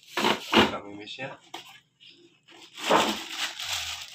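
Cardboard rustles and scrapes as a box is handled.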